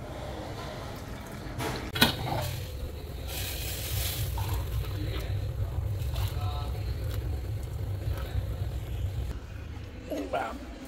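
Hot water pours into a cup.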